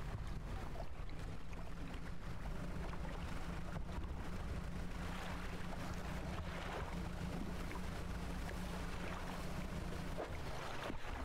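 Water splashes around a moving boat.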